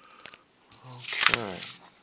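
A sheet of paper rustles as it is handled.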